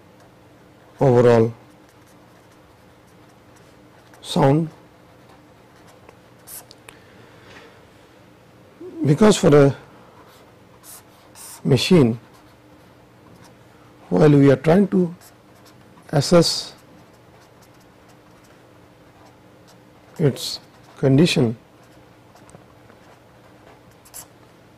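A marker pen squeaks and scratches on paper.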